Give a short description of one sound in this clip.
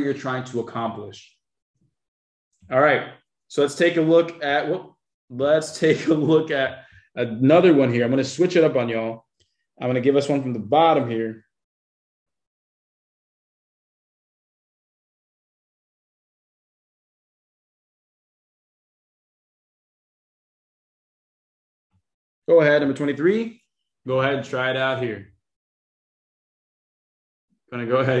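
A young man explains calmly into a close microphone, pausing between phrases.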